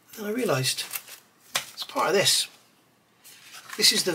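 A paper booklet rustles as it is handled.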